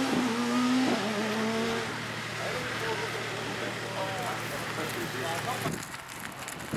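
A rally car engine roars and revs hard, shifting through gears as it speeds away.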